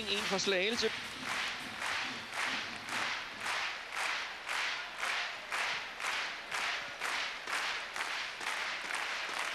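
A large crowd claps in a steady rhythm in a big echoing hall.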